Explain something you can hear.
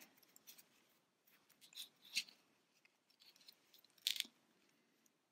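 A crochet hook rustles softly through yarn.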